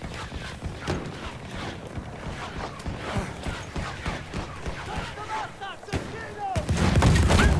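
Gunshots crack repeatedly in the distance.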